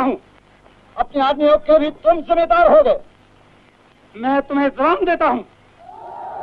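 A man speaks loudly and forcefully, heard through an old, thin-sounding recording.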